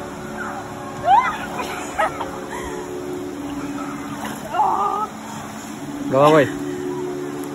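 A young woman cries out nearby.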